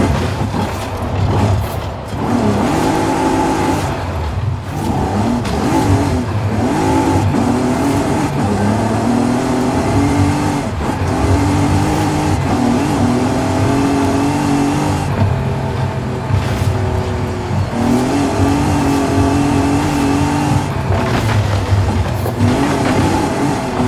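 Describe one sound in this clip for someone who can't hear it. Tyres rumble and skid on a dirt road.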